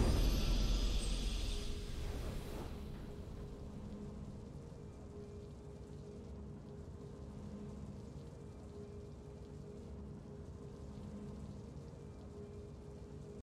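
A triumphant game fanfare swells, then fades into a low, steady hum.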